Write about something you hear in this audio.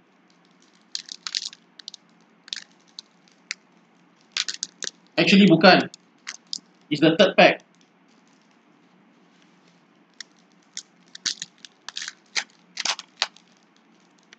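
A foil pack crinkles and tears open.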